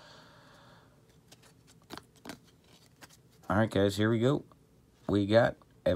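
Trading cards rustle and slide against each other as they are flipped through.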